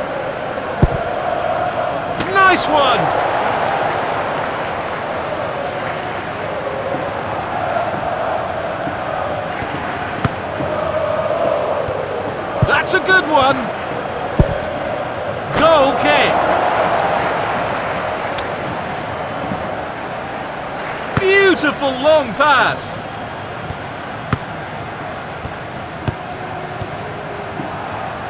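A stadium crowd roars and murmurs steadily throughout.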